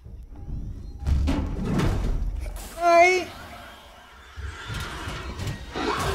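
A creature's heavy footsteps thud on a metal floor.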